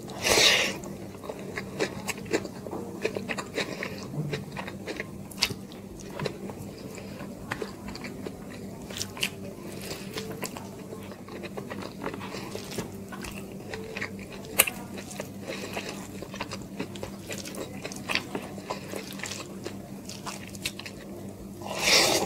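Fingers squelch and mix rice on a plate, close to the microphone.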